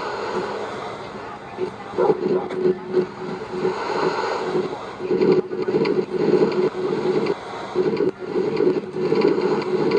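A minecart rattles and rumbles along metal rails.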